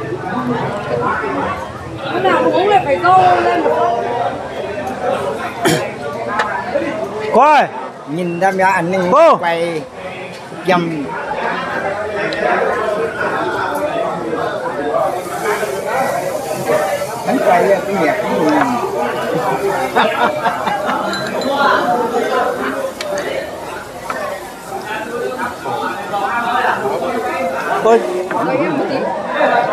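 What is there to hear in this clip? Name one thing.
Men talk and chatter close by.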